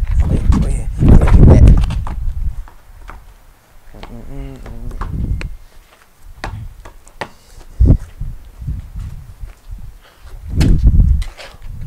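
A basketball is dribbled on concrete.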